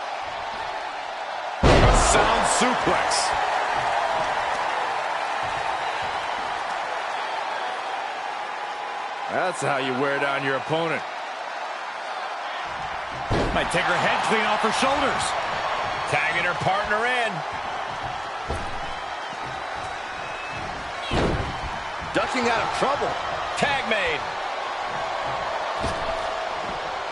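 A large arena crowd cheers and roars.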